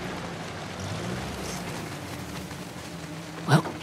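Tyres splash through shallow water.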